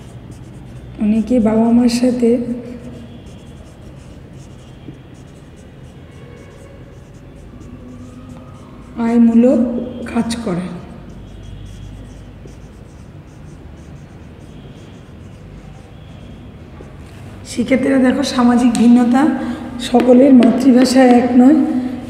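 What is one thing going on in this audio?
A woman speaks calmly, explaining, close to the microphone.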